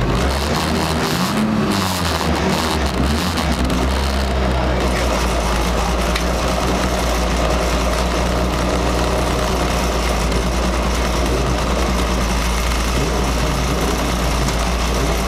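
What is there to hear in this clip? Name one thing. A rally car engine idles loudly with a deep, steady rumble.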